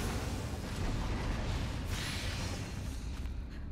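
Magic bursts with a crackling, shattering whoosh.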